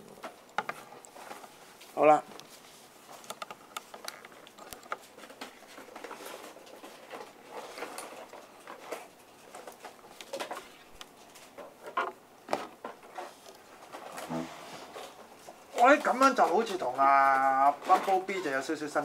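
Plastic toy parts click and tap as they are handled.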